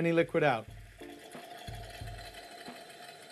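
Liquid hisses and pours from a tap into a metal cup.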